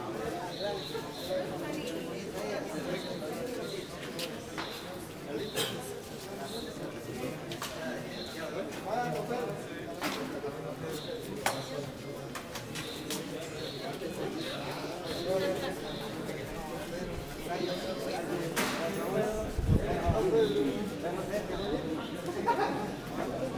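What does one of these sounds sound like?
A group of men talk quietly in the background.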